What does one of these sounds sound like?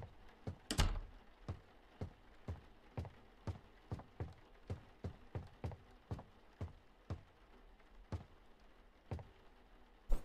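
Footsteps thud steadily across a floor.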